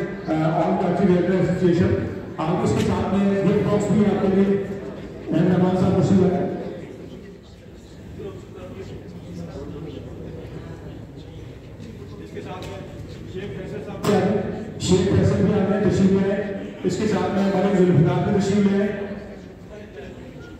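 A man speaks into a microphone, heard over loudspeakers in a large echoing tent.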